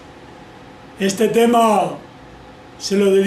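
An elderly man speaks close by in a cheerful voice.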